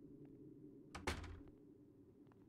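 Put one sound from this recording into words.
A wooden drawer slides open with a thud.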